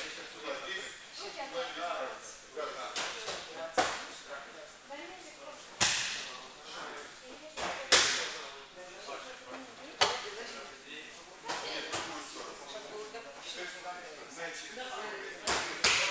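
Boys talk and call out in a large echoing hall.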